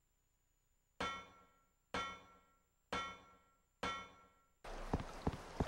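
Footsteps clang on metal ladder rungs.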